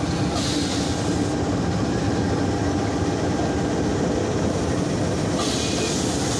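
A diesel locomotive engine rumbles loudly close by as it rolls past.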